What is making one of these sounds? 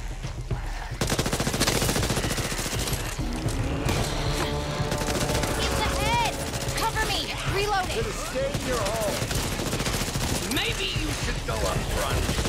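An automatic rifle fires in rapid bursts, loud and close.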